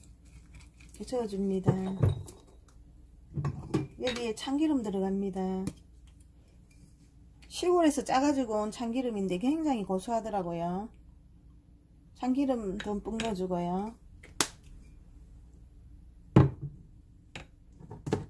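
A spoon scrapes and clinks against a glass bowl while stirring.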